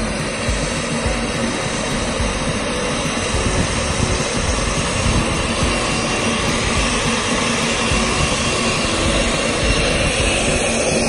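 The small jet engines of a model airliner whine steadily as it taxis.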